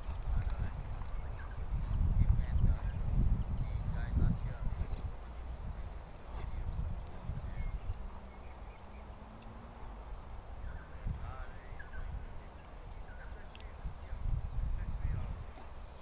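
Dogs scuffle playfully on grass.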